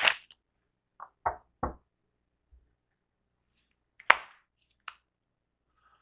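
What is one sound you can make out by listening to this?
Cards tap and slap onto a cloth-covered table.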